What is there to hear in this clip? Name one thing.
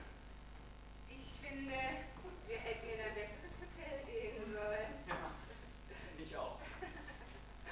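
A woman speaks calmly on a stage, heard from a distance.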